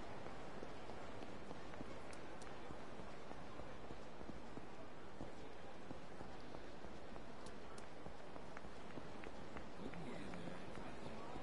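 Quick footsteps slap on pavement.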